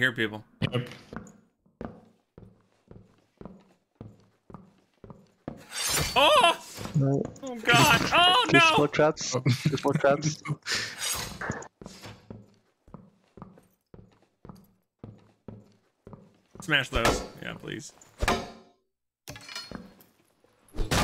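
Armoured footsteps thud steadily on stone.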